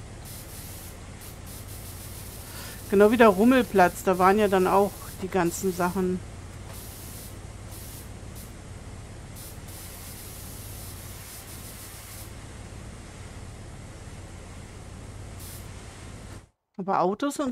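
A pressure washer sprays water with a steady hiss.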